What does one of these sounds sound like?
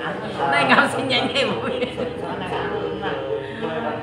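An elderly woman laughs close by.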